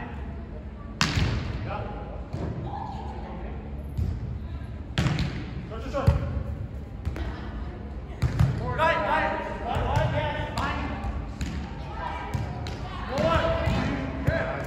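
Hands strike a volleyball with sharp slaps.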